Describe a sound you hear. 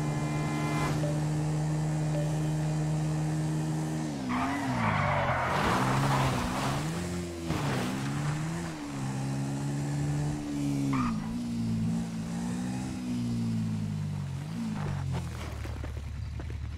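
A quad bike engine drones steadily, rising and falling in pitch as it speeds up and slows down.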